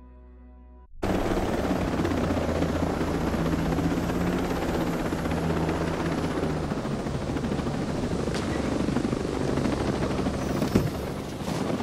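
A helicopter's rotor thumps and roars steadily.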